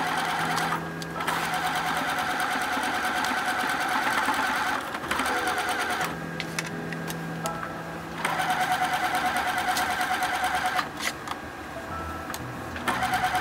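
A sewing machine runs in fast bursts, its needle stitching with a rapid rattle.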